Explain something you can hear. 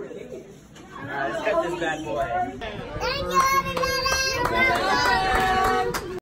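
A man talks with a young child close by.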